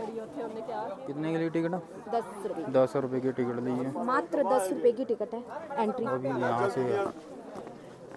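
A woman speaks loudly and with animation close by.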